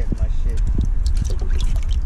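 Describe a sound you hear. Water splashes in a bucket.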